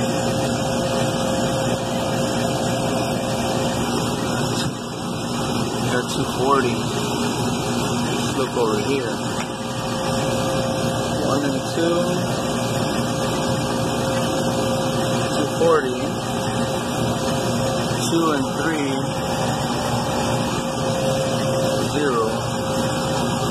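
An air conditioning unit hums steadily close by.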